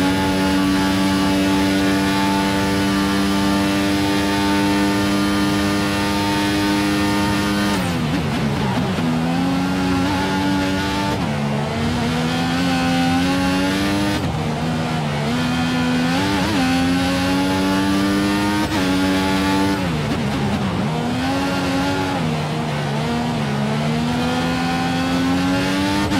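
A racing car engine screams at high revs, dropping sharply when braking and climbing again through the gears.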